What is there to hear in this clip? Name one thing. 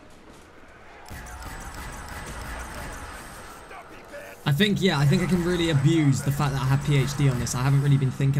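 A ray gun fires sharp, buzzing energy blasts.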